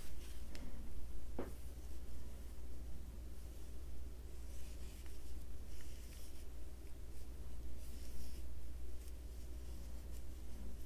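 Yarn rustles softly as a crochet hook pulls loops through stitches.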